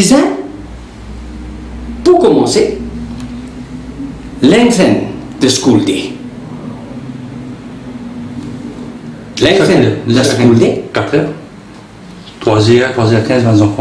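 A middle-aged man speaks nearby with emphasis, in bursts with pauses.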